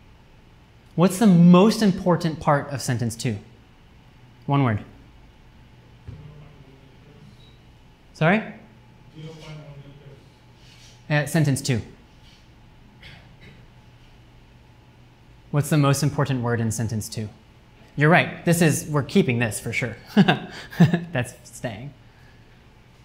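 A young man lectures through a microphone in a room, speaking calmly in short bursts with pauses.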